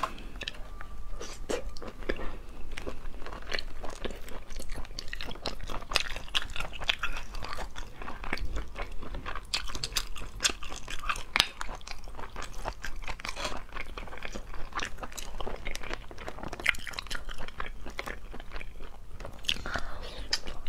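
A young woman chews and slurps wet food close to a microphone.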